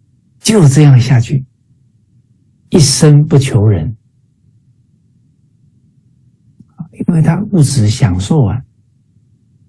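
A middle-aged man speaks calmly and warmly through an online call, with pauses between phrases.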